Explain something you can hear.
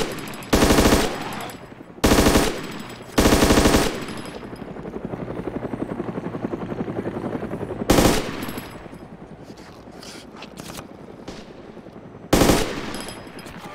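Loud gunshots crack out in short bursts.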